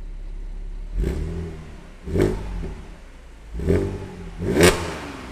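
A car engine revs sharply in short bursts, roaring through the exhaust.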